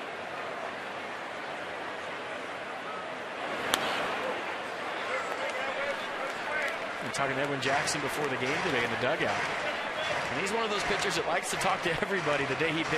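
A large stadium crowd murmurs outdoors.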